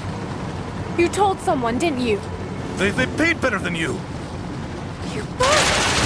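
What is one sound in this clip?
A young woman speaks with urgency.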